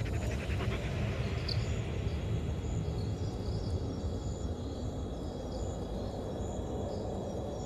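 Wind rushes steadily through trees outdoors.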